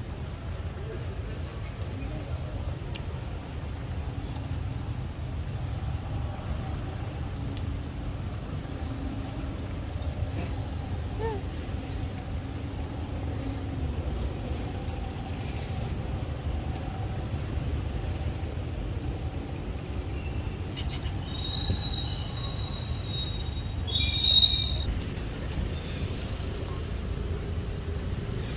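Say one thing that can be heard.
A monkey chews and slurps on juicy fruit.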